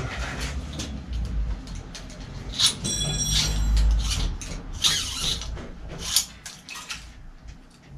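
Metal bike parts click and rattle as they are handled.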